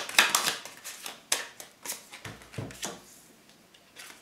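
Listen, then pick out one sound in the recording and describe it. A card slaps down onto a table.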